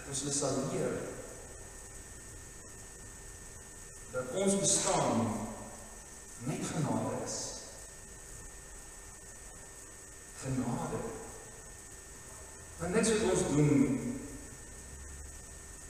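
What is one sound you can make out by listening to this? A man speaks slowly through a microphone, in short phrases with pauses, in an echoing hall.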